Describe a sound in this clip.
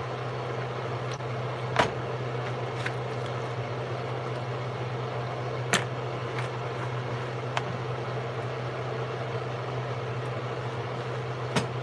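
Hands squish and knead a soft, wet mixture in a bowl.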